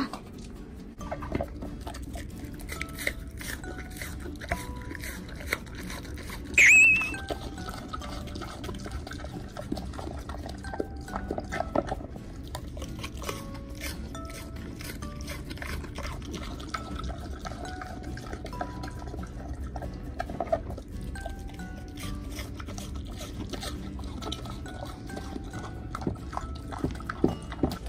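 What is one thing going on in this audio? A pig chews food with loud, wet crunching.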